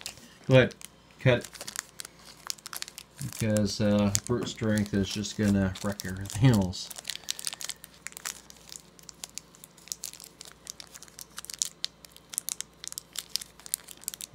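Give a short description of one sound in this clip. A plastic wrapper crinkles as hands tear it open.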